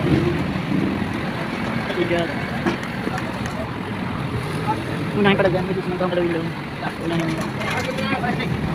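Men call out to each other outdoors.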